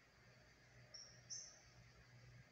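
A small bird gives a short, high chirp.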